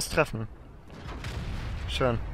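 A shell explodes with a deep, rolling boom.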